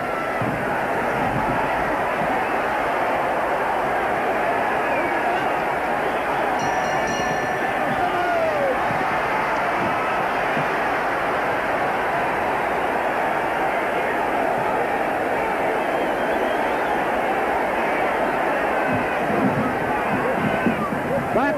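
A large indoor crowd roars and cheers steadily.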